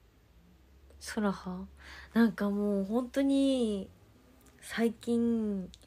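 A young woman speaks close to a microphone in a bright, lively voice.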